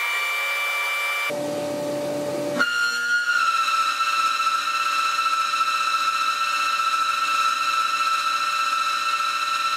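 A milling spindle whines with a steady high pitch.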